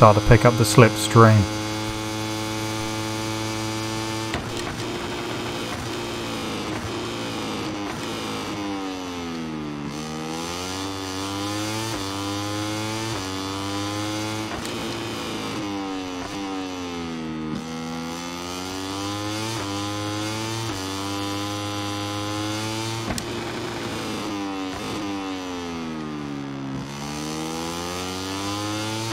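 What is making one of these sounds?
A motorcycle engine revs high, its pitch rising through the gears and dropping as it slows for corners.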